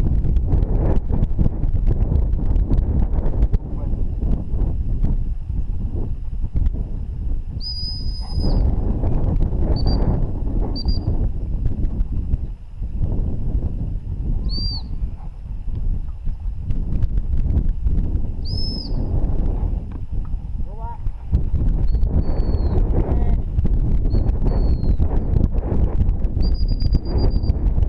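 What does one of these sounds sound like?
Wind gusts outdoors and buffets the microphone.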